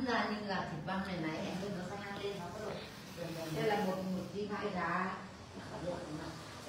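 Elderly women talk with animation close by.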